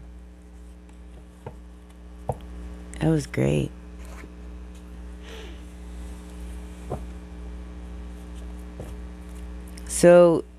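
Playing cards rustle and tap softly as they are shuffled.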